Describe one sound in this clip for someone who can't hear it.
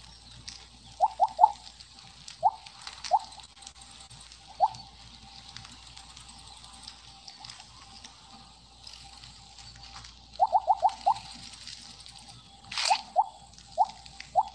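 Short electronic blips chime in quick bursts.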